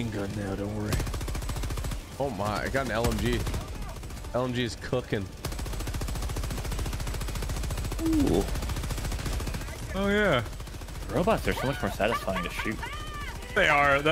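Rapid gunfire rattles in a video game.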